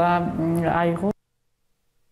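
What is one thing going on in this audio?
A woman speaks calmly to someone close by.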